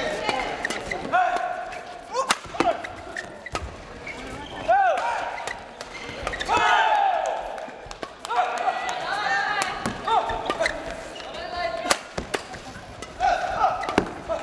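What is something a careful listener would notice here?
Sneakers squeak sharply on a court floor in an echoing hall.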